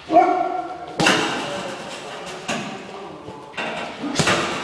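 Punches thud against a heavy bag in a large echoing hall.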